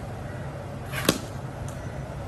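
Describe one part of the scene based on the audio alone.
A cricket bat knocks sharply against a ball.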